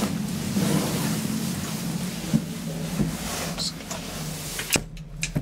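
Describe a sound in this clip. An elevator hums steadily as it moves.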